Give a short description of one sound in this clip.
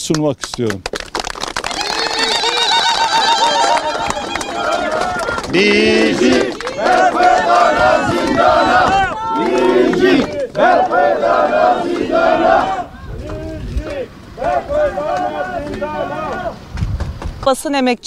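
A crowd of men and women chants together.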